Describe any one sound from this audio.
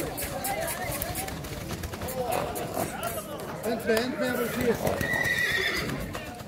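Horse hooves thud on soft sand.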